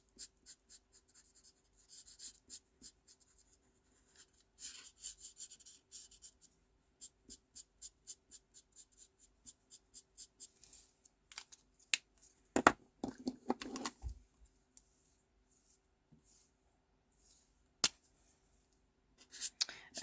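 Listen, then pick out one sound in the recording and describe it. A felt-tip marker scratches and taps rapidly on paper.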